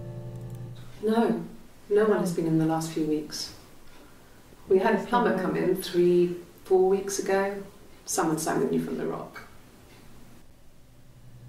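A woman speaks calmly and quietly, heard through an old recording.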